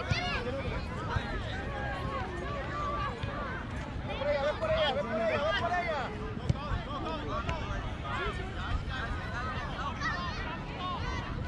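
A crowd of adults and children chatter and call out nearby, outdoors.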